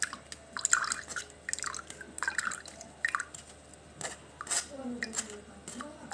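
Juice trickles into a glass.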